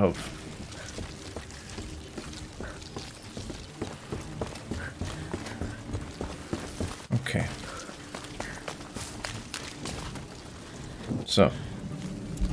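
Footsteps thud on creaking wooden planks.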